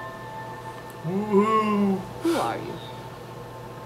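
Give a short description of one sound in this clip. A young man murmurs briefly, close by.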